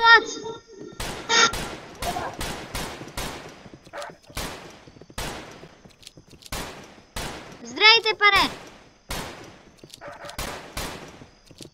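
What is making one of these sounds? Pistol shots ring out again and again.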